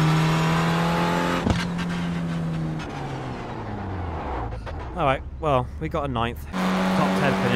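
A racing car engine drones and winds down.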